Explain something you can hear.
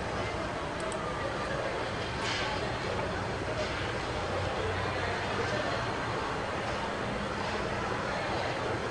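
Music plays loudly through loudspeakers.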